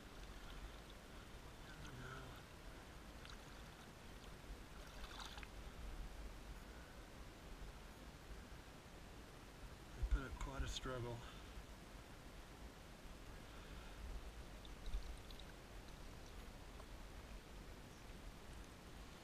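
Shallow river water flows and gurgles.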